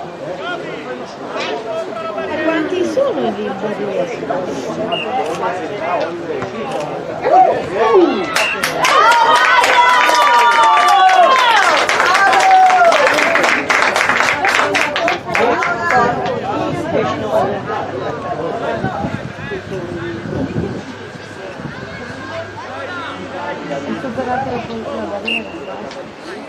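Young players shout and call to each other outdoors on an open field.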